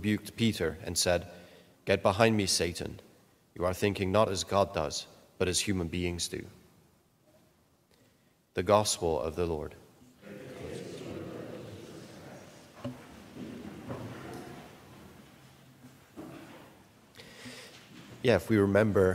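A man reads aloud calmly into a microphone in an echoing room.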